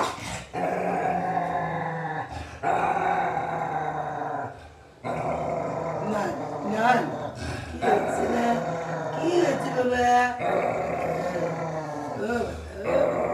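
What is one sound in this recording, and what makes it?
A dog howls in long, wavering notes.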